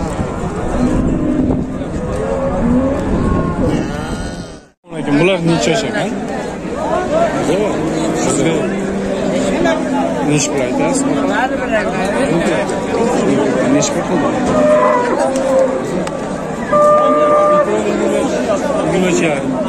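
A crowd of men chatter all around outdoors.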